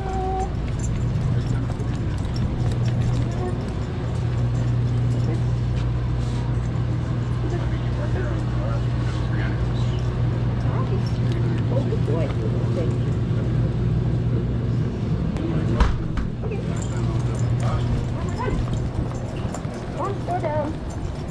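Metal clips on a dog's harness jingle faintly as the dog walks.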